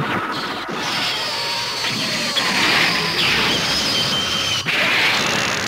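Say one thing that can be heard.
A jet engine roars as a flying machine rushes past.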